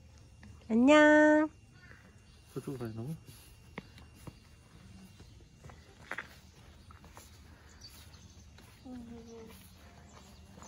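A small child squeals and babbles close by.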